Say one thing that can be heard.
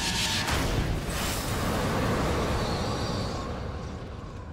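A blast of magical energy roars and rushes loudly.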